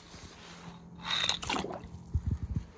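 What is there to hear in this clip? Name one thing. A toy truck splashes into pool water.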